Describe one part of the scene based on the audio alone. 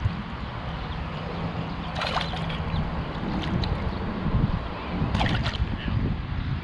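Water splashes as a fish is lifted from a stream.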